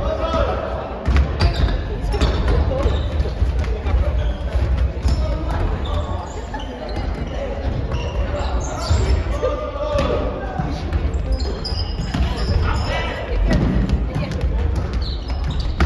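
Several men and women call out and talk with animation in a large echoing hall.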